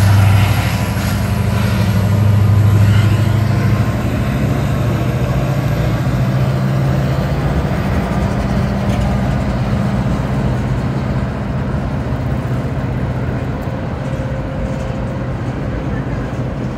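A train's diesel engine rumbles steadily nearby.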